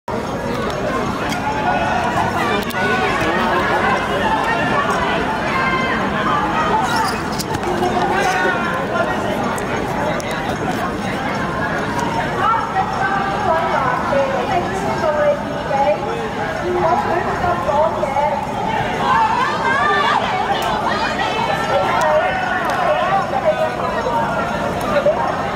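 A crowd of men and women talks and shouts outdoors.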